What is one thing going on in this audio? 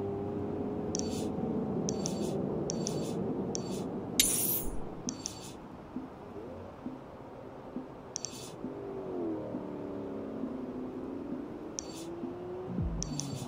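Short electronic menu clicks tick now and then.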